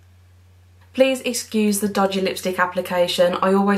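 A young woman speaks close to a microphone, brightly and with animation.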